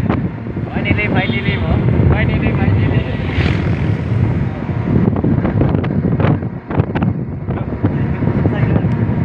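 Wind rushes and buffets past the open vehicle.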